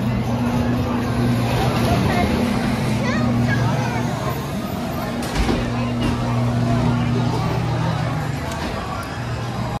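Ride cars hum and rumble steadily along a track.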